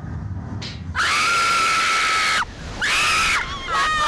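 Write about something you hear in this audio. Young women scream loudly.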